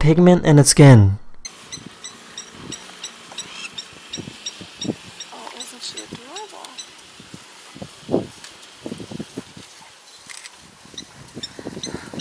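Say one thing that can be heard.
Large animals tread heavily through grass.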